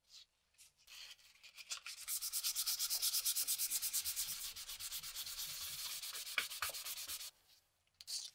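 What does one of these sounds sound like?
Sandpaper rubs back and forth quickly against wood.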